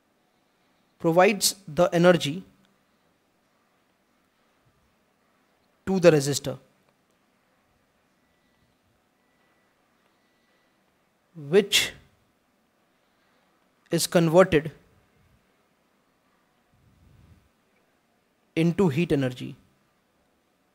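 A man speaks calmly into a close microphone in short phrases with long pauses.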